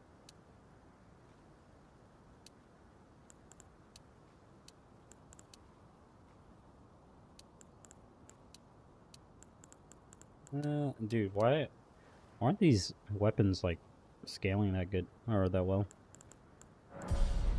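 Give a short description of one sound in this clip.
Soft menu clicks tick now and then.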